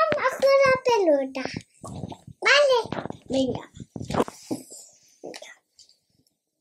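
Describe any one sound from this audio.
A little girl talks animatedly close by, her voice high and singsong.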